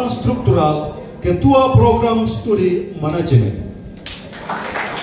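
A man speaks steadily through a loudspeaker in an echoing hall.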